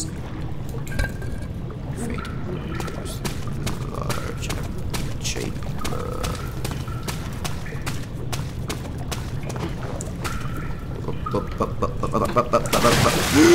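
Footsteps tap on stone in an echoing tunnel.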